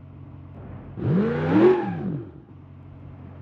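A truck engine revs up sharply and then drops back.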